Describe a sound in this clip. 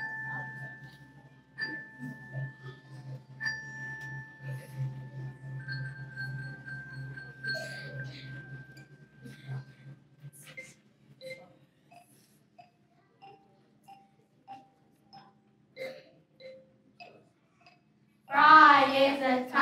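Children's footsteps shuffle on a hard floor.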